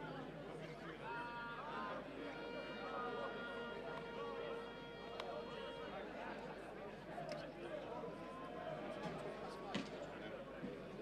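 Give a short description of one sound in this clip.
Men shout and sing together nearby.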